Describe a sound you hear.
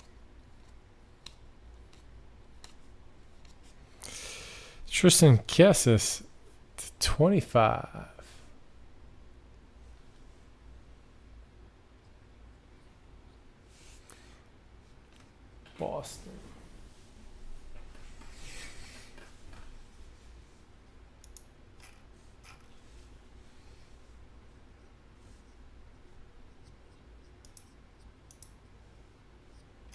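Trading cards slide and rustle softly between hands.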